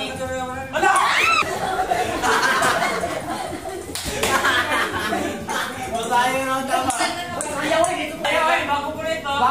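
A group of children and teenagers shout and cheer excitedly.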